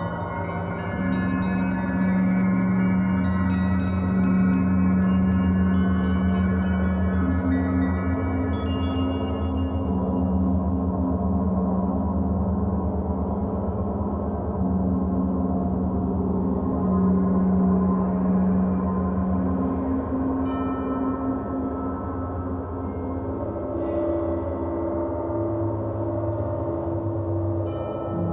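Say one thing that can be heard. A mallet strikes a gong softly.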